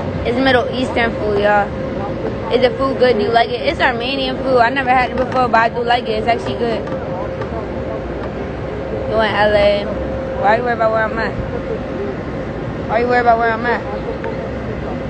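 A young woman talks casually and close to a phone microphone.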